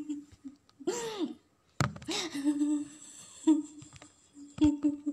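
A young woman sobs and wails close to a phone microphone.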